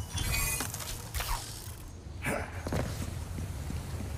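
A man lands with a thump after a jump.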